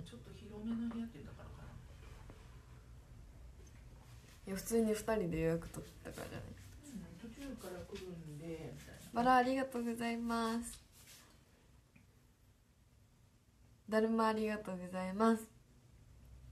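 A young woman talks casually and close to the microphone, in short bursts.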